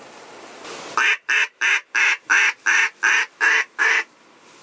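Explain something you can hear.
A duck call quacks in quick, loud bursts close by.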